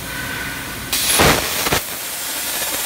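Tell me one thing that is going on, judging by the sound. A plasma cutting torch ignites with a sudden, sharp crackling burst.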